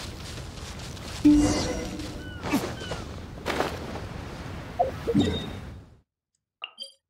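Wind rushes past during a glide.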